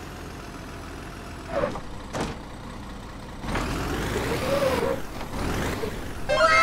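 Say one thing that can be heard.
Wooden logs creak and knock under heavy truck wheels.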